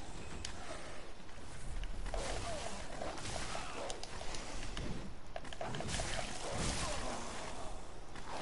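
A sword clangs against skeleton bones.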